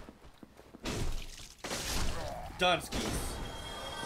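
A sword slashes and strikes a body with a heavy thud.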